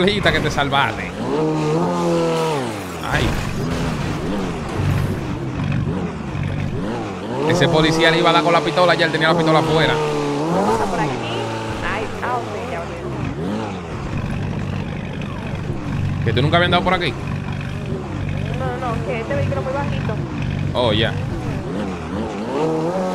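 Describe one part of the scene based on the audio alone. A sports car engine revs and roars, rising and falling in pitch.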